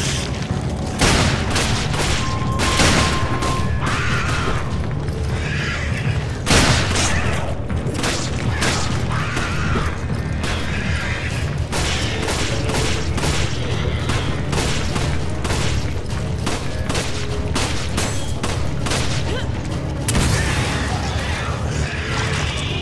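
Handgun shots ring out sharply, several times.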